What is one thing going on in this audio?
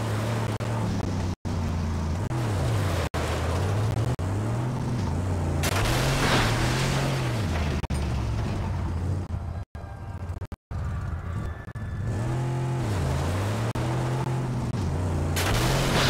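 Tyres crunch and skid over loose sand.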